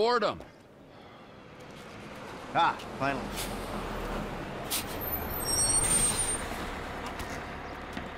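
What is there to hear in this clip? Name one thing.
A bus engine rumbles as the bus pulls up.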